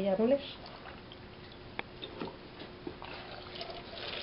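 Wet vegetables squelch and slosh in water as hands squeeze them.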